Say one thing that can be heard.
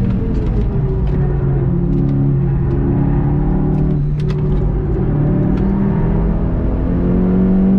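A car engine roars loudly, its pitch rising and falling as the car speeds around a track.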